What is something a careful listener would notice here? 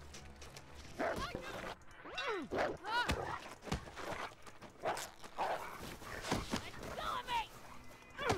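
A wolf snarls and growls fiercely up close.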